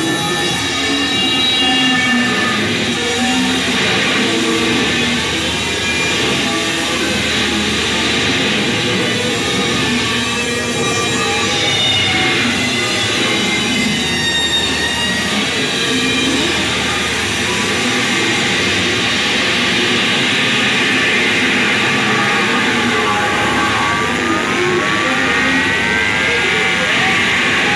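Electronic sounds hum and warble steadily from a synthesizer setup.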